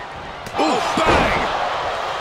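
A heavy thud of a body hitting a wrestling mat.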